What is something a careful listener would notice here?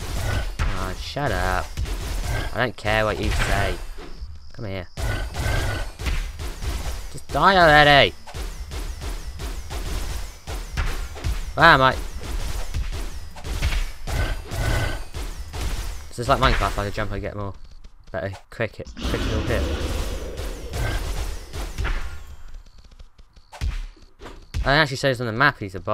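A large monster roars and groans.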